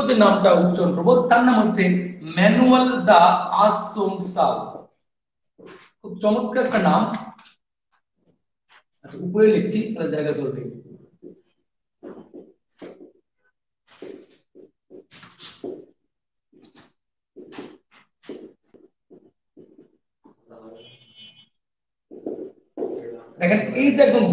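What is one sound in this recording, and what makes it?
A young man speaks calmly, like a lecturer, close by.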